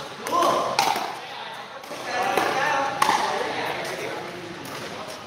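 Men talk and call out nearby in a large echoing hall.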